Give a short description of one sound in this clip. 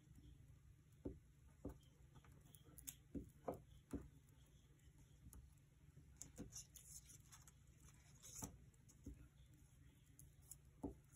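A hand presses and smooths paper on a tabletop.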